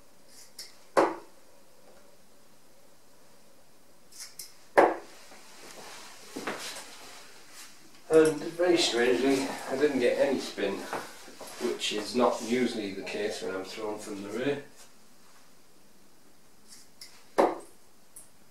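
Darts thud sharply into a dartboard.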